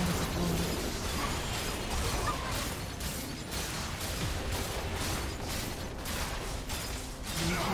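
Game characters clash with spell blasts and sword hits.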